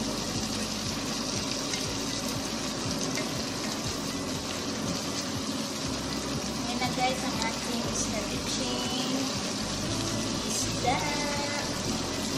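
A wooden spatula scrapes and clacks against a pan.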